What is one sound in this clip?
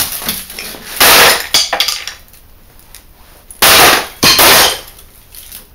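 A hammer strikes a plastic casing with heavy, loud bangs.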